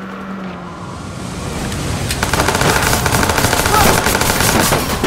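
A car crashes into another car with a loud crunch.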